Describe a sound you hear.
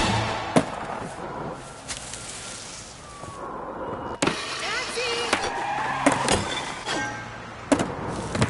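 A skateboard clacks sharply on landing.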